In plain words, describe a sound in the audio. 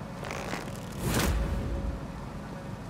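A sword swings through the air with a sharp whoosh.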